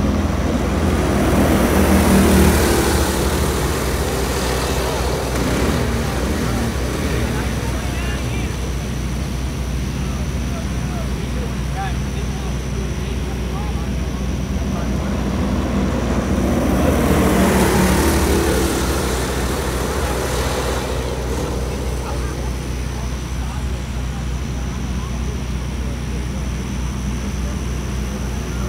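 Kart engines drone steadily in the distance around a track.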